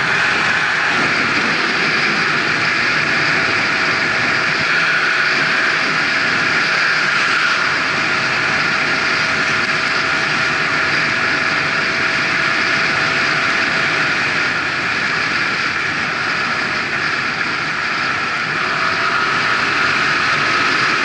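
Wind rushes loudly and steadily past the rider, outdoors.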